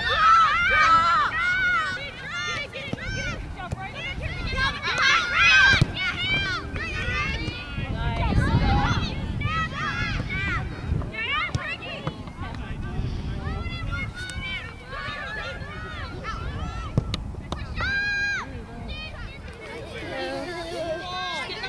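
Young women shout to one another across an open field.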